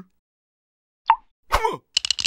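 A small cup clanks down onto a hard surface.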